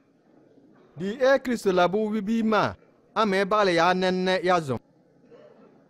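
An elderly man speaks firmly and loudly, close by.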